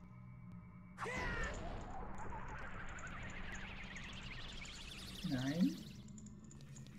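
A magic spell roars and crackles like a burst of fire.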